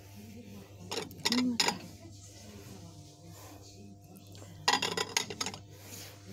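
Glass bowls clink together as they are handled.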